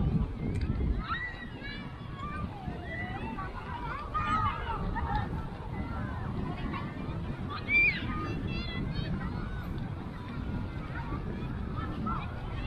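Children and adults shout and call out in the distance.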